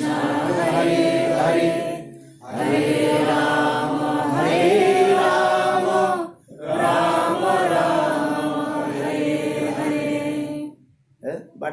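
An elderly man sings into a microphone in long, held phrases.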